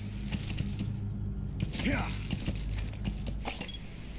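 A horse's hooves thud slowly on dirt.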